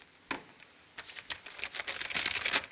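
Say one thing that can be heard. Paper rustles and crinkles in a man's hands.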